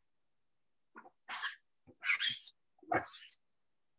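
A sponge dabs and rubs against paper.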